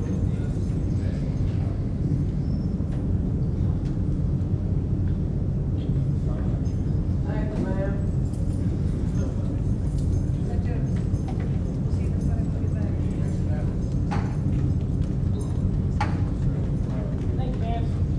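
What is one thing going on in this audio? A group of teenage boys chat and murmur.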